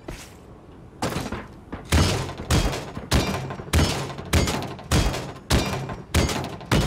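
A heavy game weapon fires loud booming shots at a steady pace.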